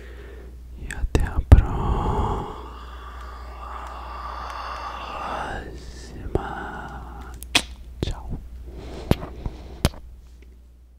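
Mouth sounds click and smack right at a microphone.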